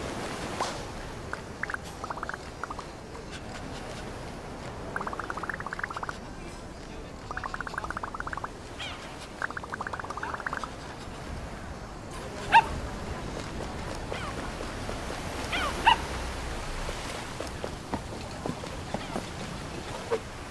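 Waves wash gently against a shore.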